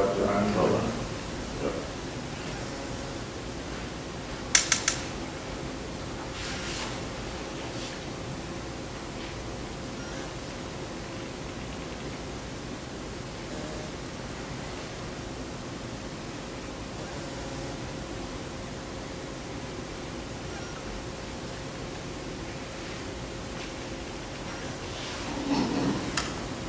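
An elderly man speaks calmly through a microphone on an online call.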